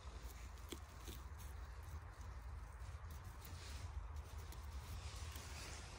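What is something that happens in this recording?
A knife softly cuts through a mushroom stem.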